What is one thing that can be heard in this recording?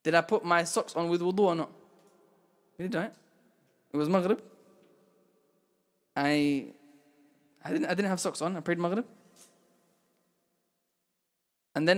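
A young man speaks calmly into a microphone in a small echoing room, pausing often.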